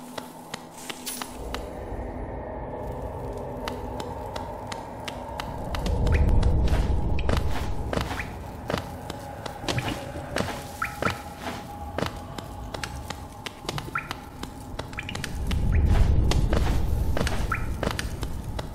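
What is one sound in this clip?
Light footsteps tap quickly and steadily.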